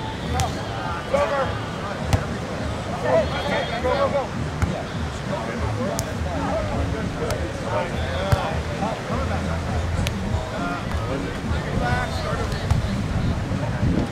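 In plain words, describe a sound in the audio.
A ball is struck with dull thumps.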